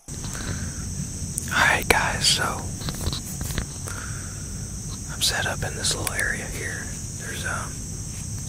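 A young man talks calmly, close to a clip-on microphone.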